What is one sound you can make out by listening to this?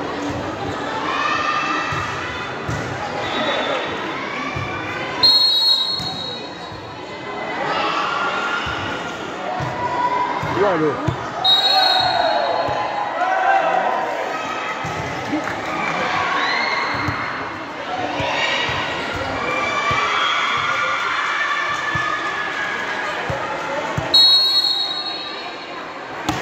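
A large crowd shouts and cheers in an echoing hall.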